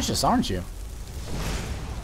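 A magical shield hums and crackles.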